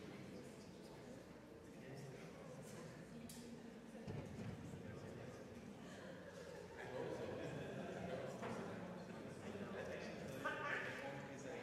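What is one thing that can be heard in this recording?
A crowd of people chatter in a large echoing hall.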